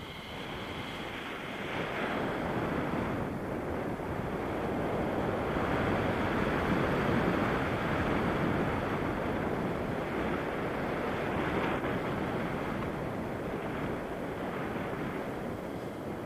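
Strong wind rushes and buffets loudly past the microphone.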